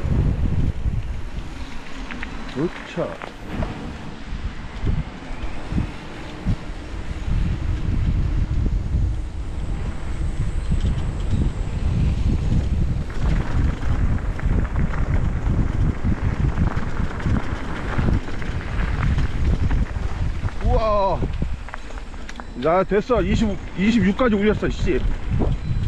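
Wind buffets the microphone while riding outdoors.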